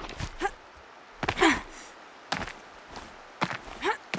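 Hands scrape and grip on rock while climbing.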